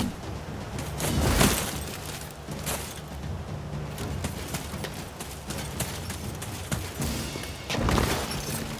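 Tall grass and brush rustle as they are pushed aside.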